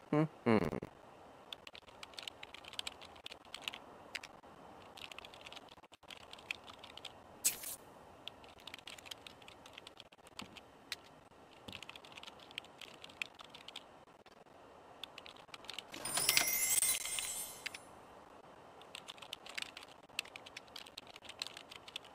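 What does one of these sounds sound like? Keys tap quickly on a computer keyboard.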